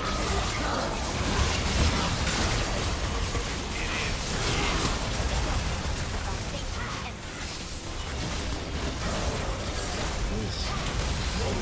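Spell effects and magical blasts crackle and whoosh in quick bursts.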